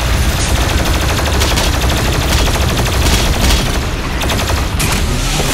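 A heavy gun fires rapid blasts.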